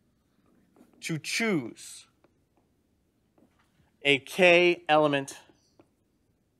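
A man speaks calmly nearby, in short phrases.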